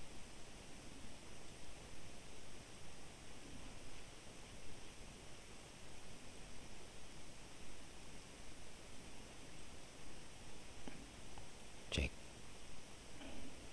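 A man speaks quietly into a nearby microphone.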